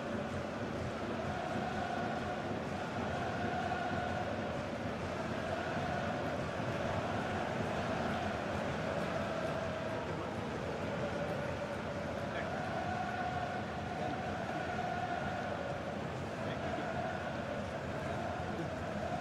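A large crowd sings and chants throughout a big open stadium.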